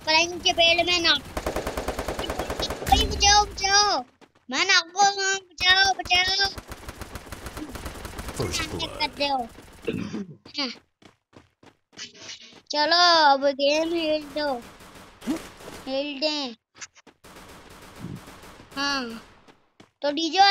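A young boy talks excitedly, close to a microphone.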